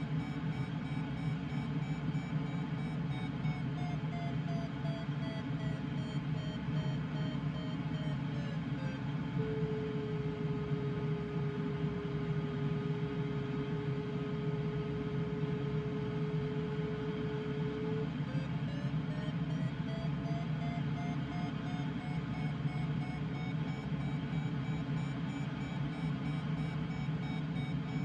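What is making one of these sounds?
Wind rushes steadily past a glider's canopy in flight.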